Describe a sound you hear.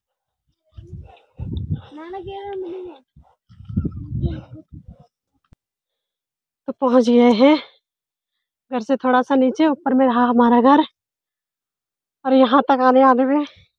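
A middle-aged woman talks close to the microphone with animation.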